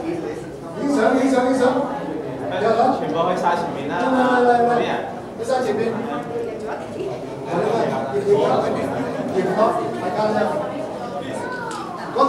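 A man speaks loudly to a large group.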